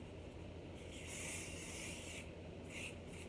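An aerosol can sprays with a short, steady hiss.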